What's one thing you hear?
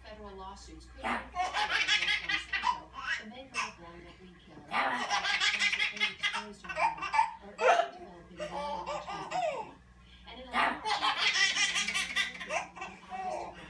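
A baby squeals excitedly close by.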